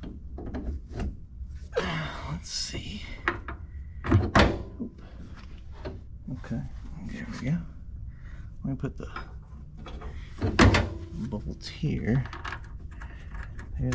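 Small metal parts click and rattle as a hand works a fitting.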